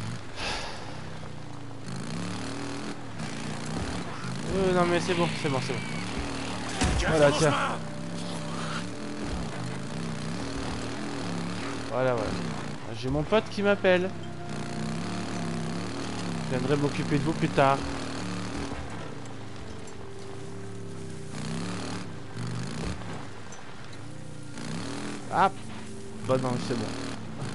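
A motorcycle engine hums steadily, rising and falling.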